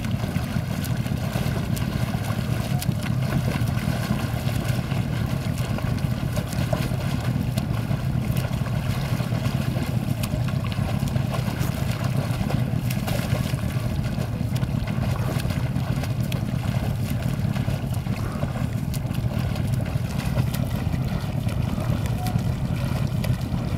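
A swimmer's arms splash rhythmically through calm water.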